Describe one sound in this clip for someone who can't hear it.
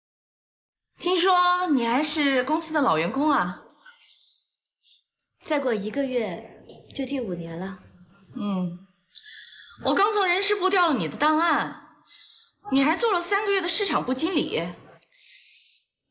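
A woman speaks nearby in a cool, questioning tone.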